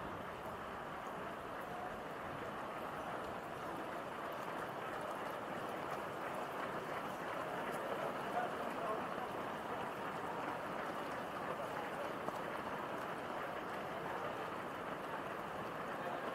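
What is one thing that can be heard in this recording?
Many running feet patter on pavement.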